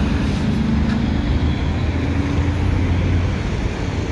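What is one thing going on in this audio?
A tanker truck's engine drones as it drives slowly by.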